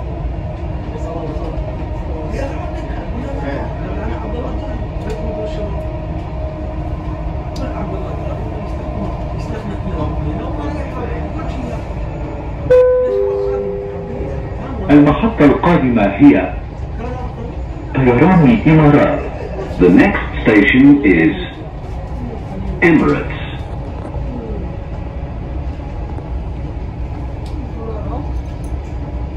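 A train rumbles steadily along its track.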